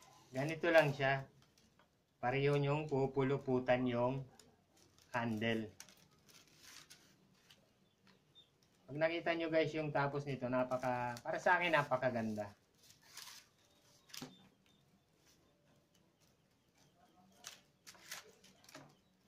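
Rattan strips rustle and tap as they are woven into a basket.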